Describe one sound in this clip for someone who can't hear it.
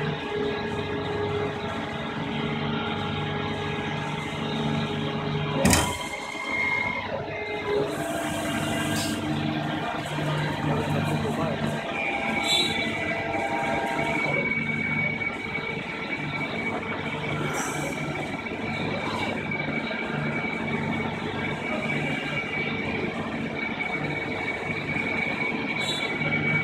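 A milling machine hums and whines steadily in a large, echoing workshop.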